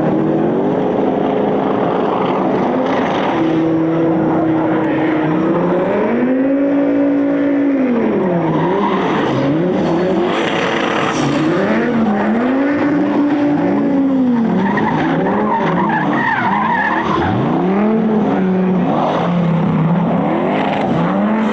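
Tyres screech on asphalt as a car drifts.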